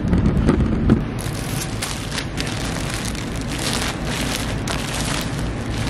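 Plastic wrap crinkles and rustles close by.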